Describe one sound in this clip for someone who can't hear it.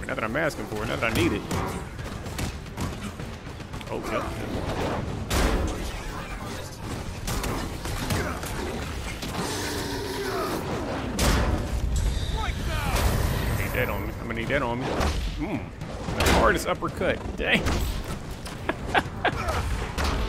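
Game fighting sounds clash and crackle with blasts and impacts.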